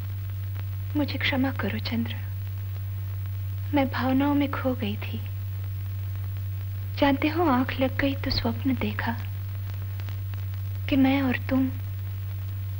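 A young woman speaks softly and earnestly, close by.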